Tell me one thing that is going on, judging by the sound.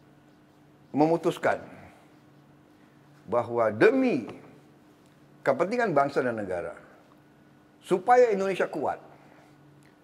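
An older man speaks calmly and deliberately, in short phrases with pauses.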